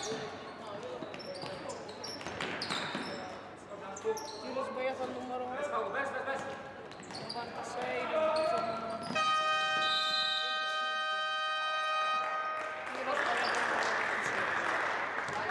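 Sounds of play echo in a large indoor hall.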